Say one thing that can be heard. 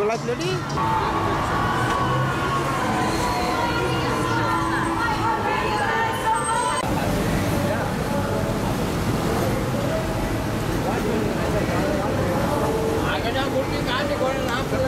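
People chatter in a busy street outdoors.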